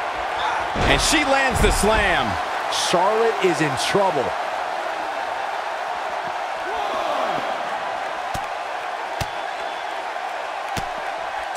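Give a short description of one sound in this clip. Wrestlers' bodies thud heavily onto the floor.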